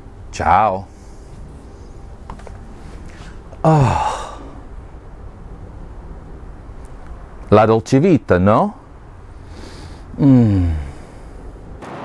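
A man makes short swooping vocal sounds close by.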